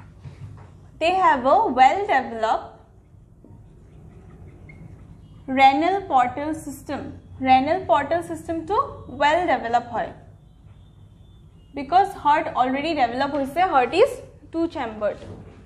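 A woman speaks clearly and steadily, close to a microphone.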